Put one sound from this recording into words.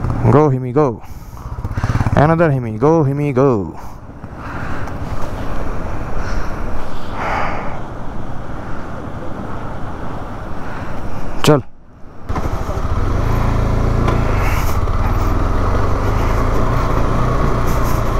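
A motorcycle engine hums and revs up and down.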